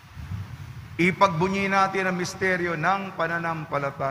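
A man sings in a steady, sustained chant through a microphone in an echoing hall.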